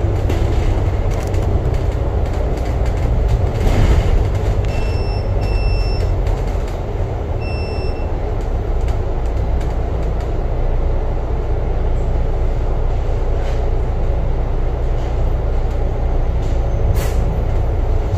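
A bus engine rumbles steadily from inside as the bus drives along a road.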